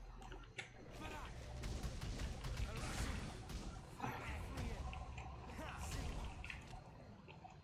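Fiery spells burst and crackle.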